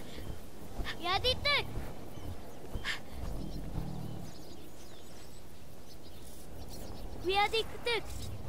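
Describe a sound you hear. A large creature cries out with high, whining calls.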